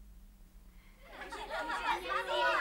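A young boy speaks.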